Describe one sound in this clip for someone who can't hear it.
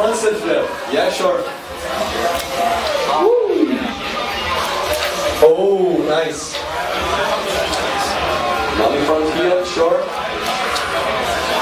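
A man talks with animation through a microphone over loudspeakers.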